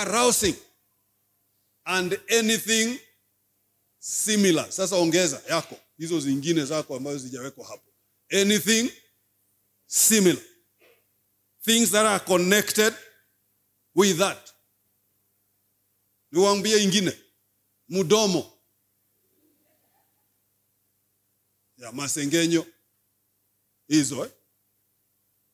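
A man preaches forcefully into a microphone, in short emphatic bursts with pauses.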